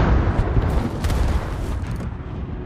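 A shell explodes with a splash in the water nearby.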